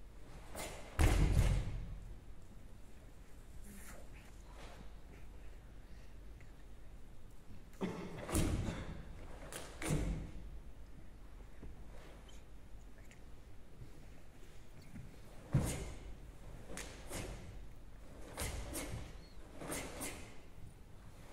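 A young woman shouts sharply in a large echoing hall.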